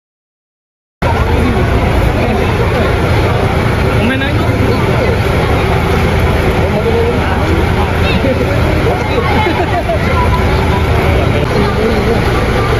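A bus engine rumbles steadily nearby.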